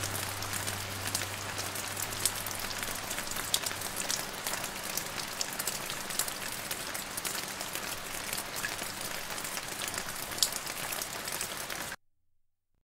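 Steady rain pours down with scattered drips and patters.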